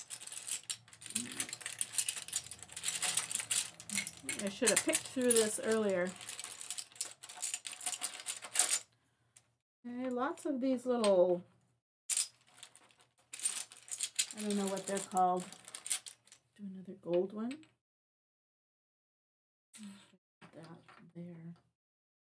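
A middle-aged woman talks calmly and close to a microphone.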